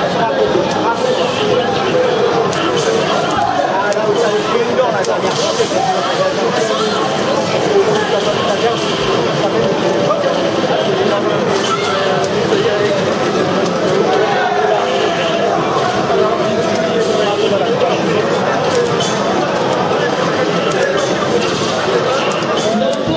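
Punches, kicks and energy blasts from a video game thump and crackle through a loudspeaker.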